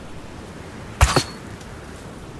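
A sling snaps as a stone is loosed.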